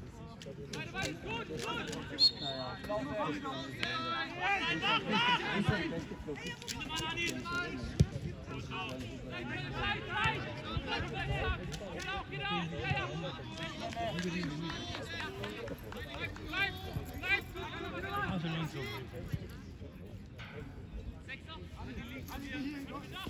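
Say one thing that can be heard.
Young men shout and call out across an open field nearby.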